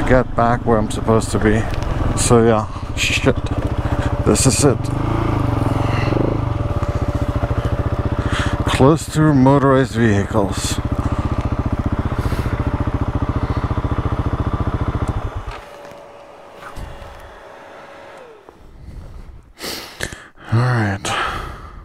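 A man talks calmly into a helmet microphone, close up.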